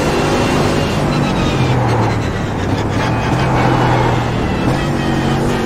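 A racing car engine drops in pitch as the car brakes hard and shifts down.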